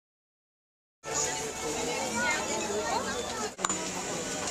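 A crowd of shoppers chatters outdoors.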